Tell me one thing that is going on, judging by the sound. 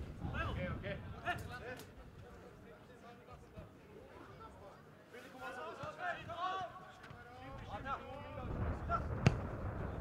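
Young men shout across an open football pitch outdoors.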